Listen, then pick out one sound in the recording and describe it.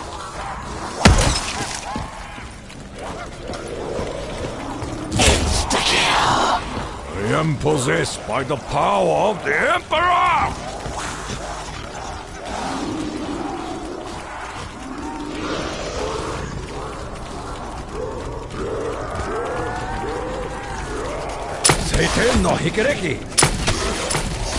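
A heavy energy cannon fires with booming blasts.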